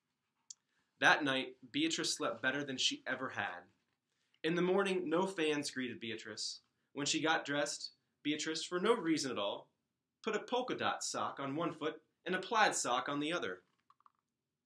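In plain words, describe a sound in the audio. A man reads aloud calmly and close by.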